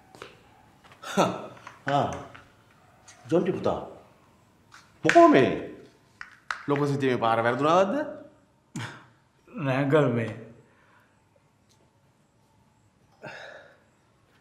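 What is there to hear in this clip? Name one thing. A second man answers in a low voice nearby.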